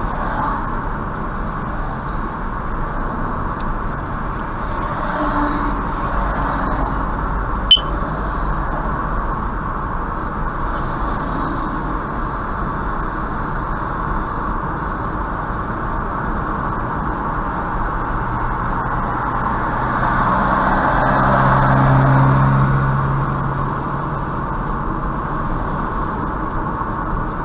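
A car hums steadily along a highway, with road noise from its tyres.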